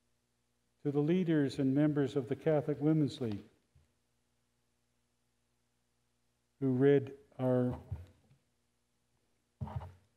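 An elderly man reads out calmly into a microphone, slightly muffled.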